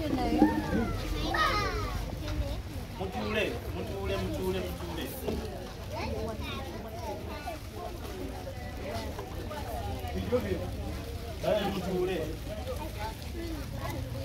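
A crowd of children and adults chatter all around outdoors.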